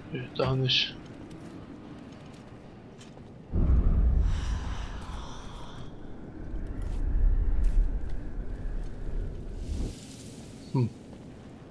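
Soft footsteps scuff on a stone floor.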